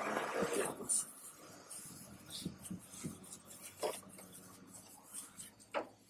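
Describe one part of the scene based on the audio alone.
A cloth rubs and wipes against metal.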